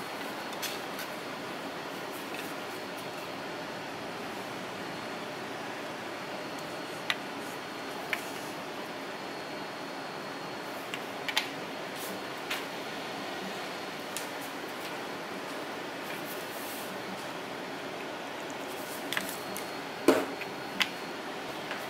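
Plastic pieces clack softly as they are set down on a cardboard surface.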